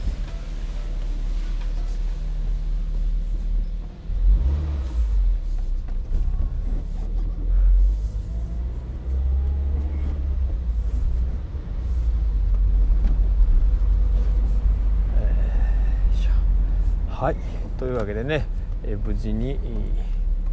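Wind rushes past an open-top car.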